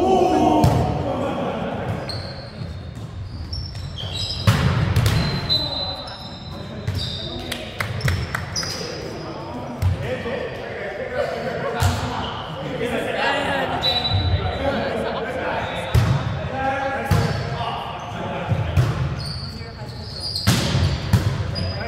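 A volleyball is struck with sharp slaps, echoing in a large hall.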